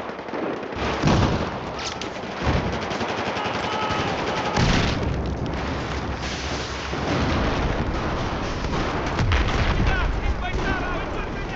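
Gunshots crack and boom in short bursts.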